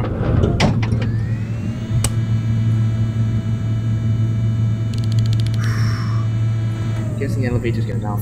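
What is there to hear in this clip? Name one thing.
An elevator motor hums steadily as the car moves.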